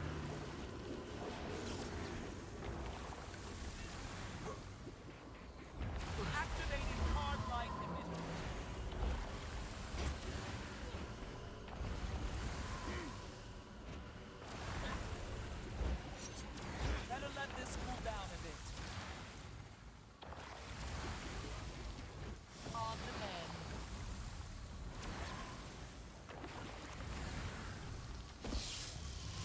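Game spell effects crackle and whoosh in quick bursts.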